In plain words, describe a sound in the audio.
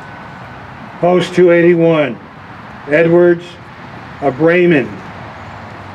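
An elderly man speaks slowly through a loudspeaker outdoors.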